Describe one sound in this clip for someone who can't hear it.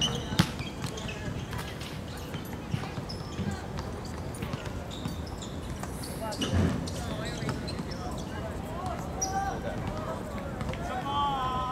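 Young men shout to each other from a distance outdoors.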